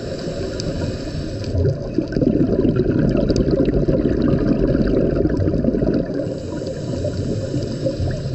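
Muffled underwater water noise rumbles and crackles steadily.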